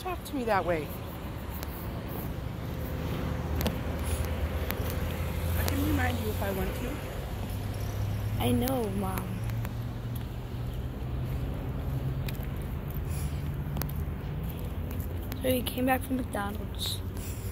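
A boy speaks briefly and casually, close to the microphone.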